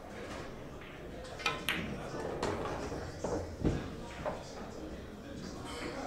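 A ball drops into a pocket with a dull thud.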